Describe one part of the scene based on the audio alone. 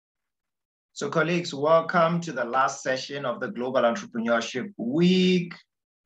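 A man speaks with animation, close to the microphone.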